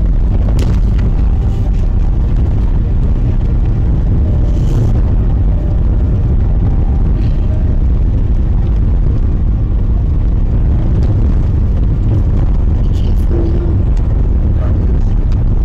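Wind-driven snow patters against a windscreen.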